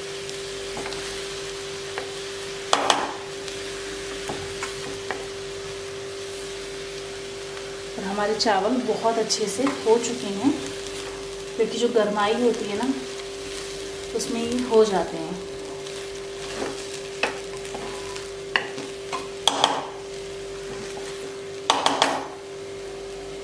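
A spatula scrapes and clinks against a metal pan.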